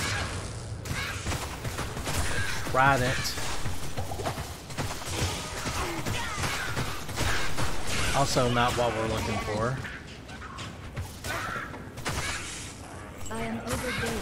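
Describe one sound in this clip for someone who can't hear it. Game spells crackle and blast.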